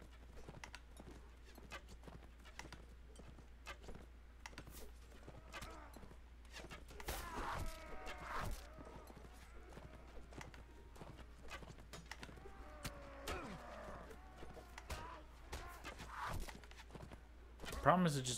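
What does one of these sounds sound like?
Horse hooves thud steadily on grass.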